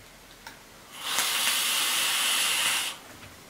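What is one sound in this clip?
An electronic cigarette hisses steadily as a man draws on it.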